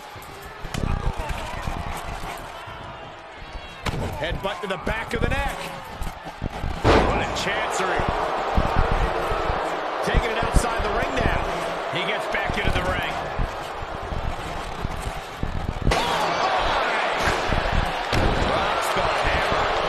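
Bodies thud heavily onto a wrestling mat.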